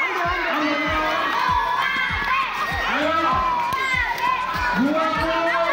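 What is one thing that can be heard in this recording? A crowd of children shouts and chatters excitedly nearby.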